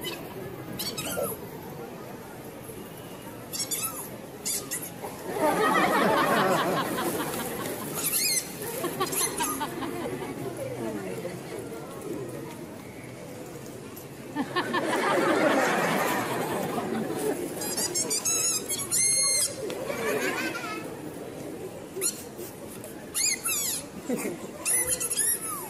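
Onlookers murmur in a busy street.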